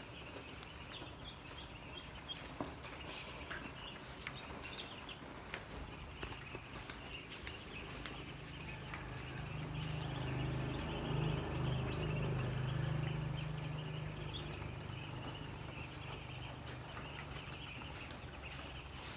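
A large flock of chicks peeps and chirps constantly.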